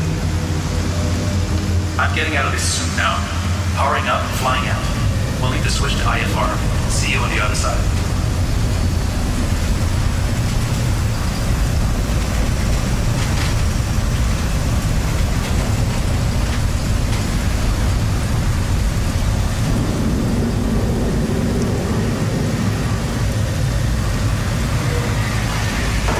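A hovering aircraft's engines rumble low and steady.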